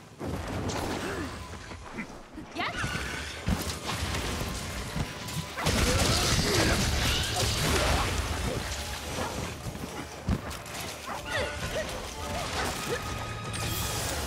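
Weapon strikes clang and slash against a monster.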